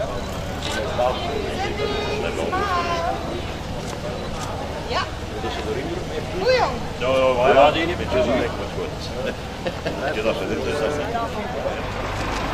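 Several men and women chatter and call out nearby outdoors.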